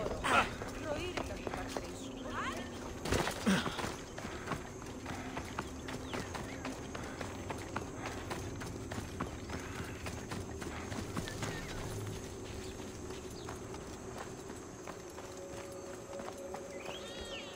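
Footsteps crunch quickly on sand and stone.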